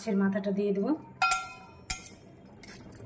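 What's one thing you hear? A ladle clinks against a metal bowl.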